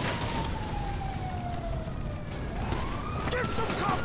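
An assault rifle fires.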